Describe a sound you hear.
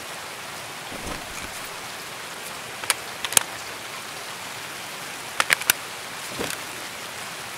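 Gear clicks and knocks sharply a few times.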